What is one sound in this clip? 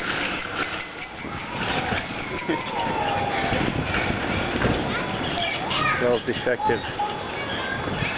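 A young woman talks while cycling close by.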